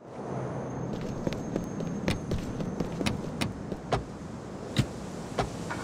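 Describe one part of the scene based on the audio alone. Car doors thud shut several times.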